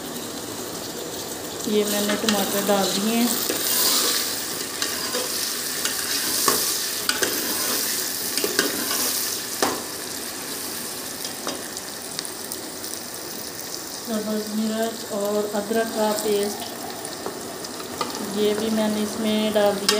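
Chopped vegetables are tipped into a metal pot.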